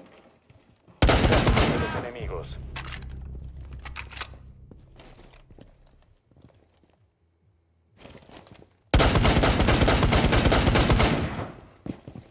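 A rifle fires rapid, loud bursts of gunshots up close.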